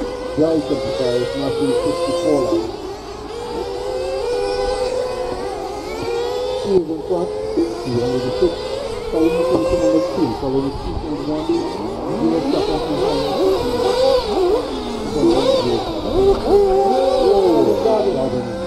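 Small remote-control cars whine around a track, their motors rising and falling in pitch.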